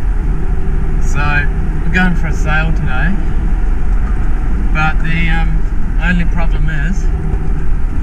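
A young man talks with animation up close.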